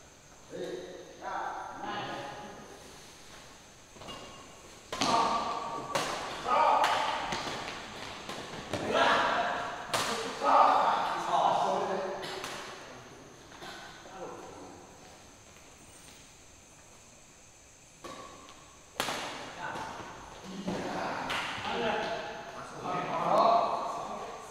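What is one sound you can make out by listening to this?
Badminton rackets strike a shuttlecock in an echoing indoor hall.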